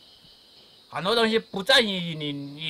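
An older man speaks slowly nearby.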